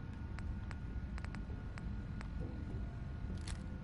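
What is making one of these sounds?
Soft electronic clicks tick as a menu scrolls.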